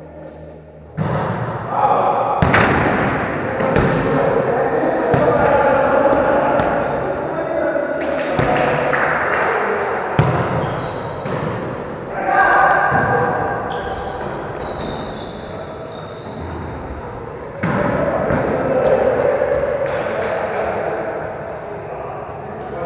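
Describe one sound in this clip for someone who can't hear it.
Men and a young woman call out to each other across an echoing hall.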